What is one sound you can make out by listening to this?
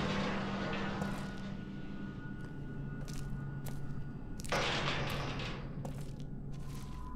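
Footsteps tap slowly on a hard floor.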